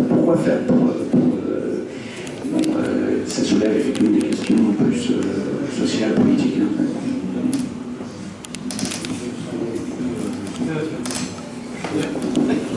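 A man speaks calmly into a microphone, heard through a loudspeaker in a room that echoes a little.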